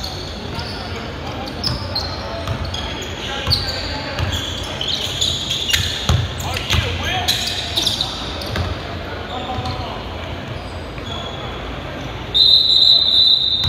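Sneakers squeak sharply on a hardwood floor in a large echoing gym.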